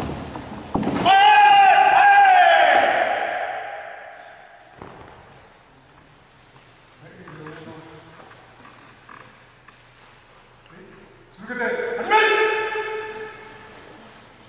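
A man lets out a loud, long shout that rings in a large echoing hall.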